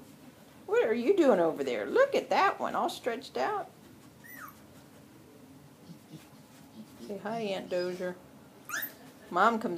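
Puppies whine and yelp loudly close by.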